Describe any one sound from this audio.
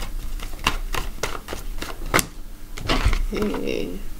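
A card is slapped down on a wooden table.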